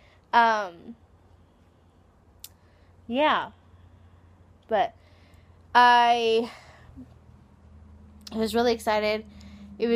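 A woman speaks expressively in short, sing-song bursts close to a microphone.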